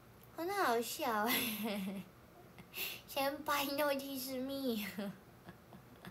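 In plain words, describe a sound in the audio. A young woman speaks softly and playfully close to a microphone.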